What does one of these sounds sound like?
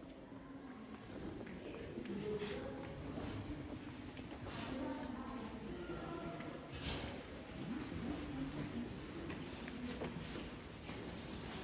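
Adult visitors murmur softly in the background.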